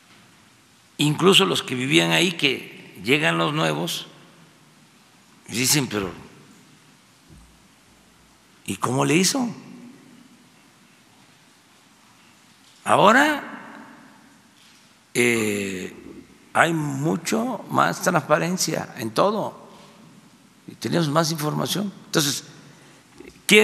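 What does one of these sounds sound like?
An elderly man speaks slowly and deliberately into a microphone, with pauses between phrases.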